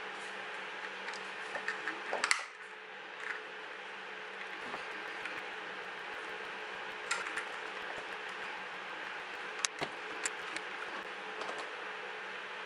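Plastic parts click and snap as a casing is pried apart.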